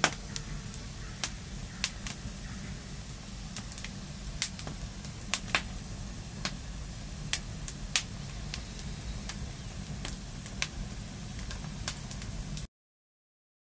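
Flames roar softly in a campfire.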